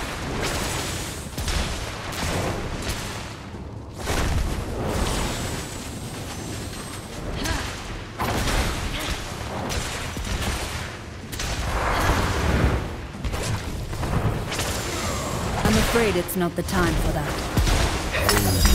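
Magic spells burst and crackle in quick blasts.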